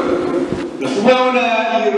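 A man chants loudly in a large echoing hall.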